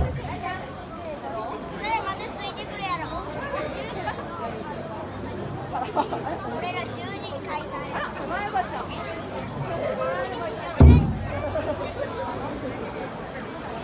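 Children chant and sing together close by.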